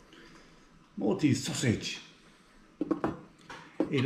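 A knife and fork clink against a plate.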